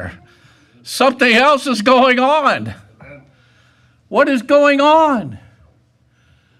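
An elderly man preaches with animation through a microphone, his voice rising and falling.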